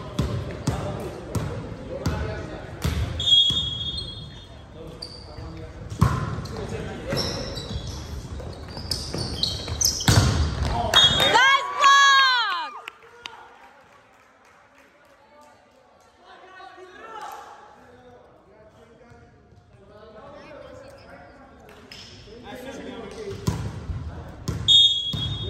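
A volleyball is hit with sharp smacks that echo in a large gym.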